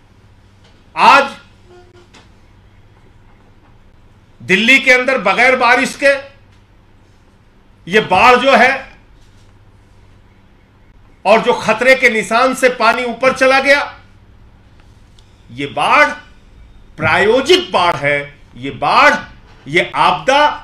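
A middle-aged man speaks forcefully into microphones, pausing between phrases.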